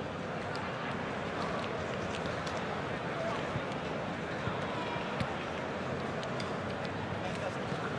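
Players slap hands in high fives.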